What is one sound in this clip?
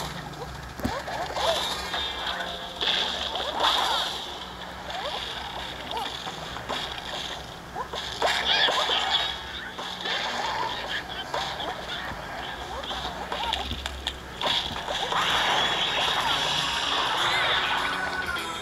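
Game sound effects pop and splat rapidly as plants shoot at zombies.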